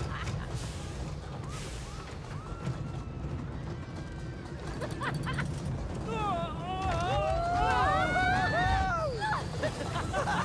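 A roller coaster car rumbles and clatters along its track.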